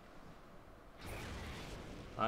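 A fiery explosion bursts with a roar.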